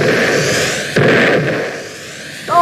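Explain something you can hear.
A gun fires with a loud blast.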